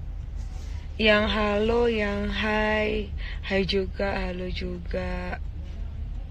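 A young woman sings up close into a microphone.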